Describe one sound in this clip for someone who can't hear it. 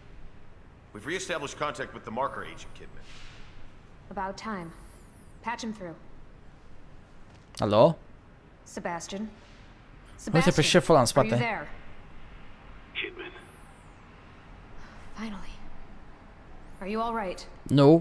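A young woman speaks calmly and confidently.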